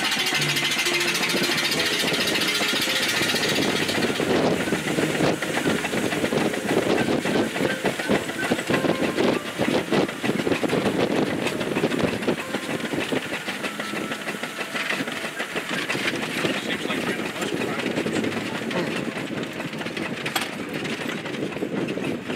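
A vehicle engine rumbles loudly while driving.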